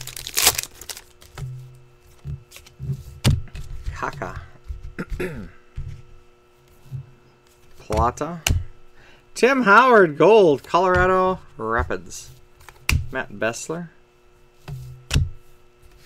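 Cards slide and tap against each other as they are handled.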